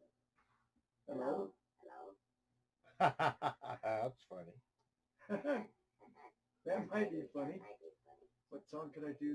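A middle-aged man talks and laughs close to a microphone.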